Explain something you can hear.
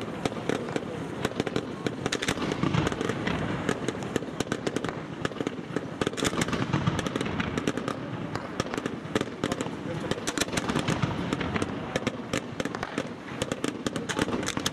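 Fireworks launch with rapid crackling pops.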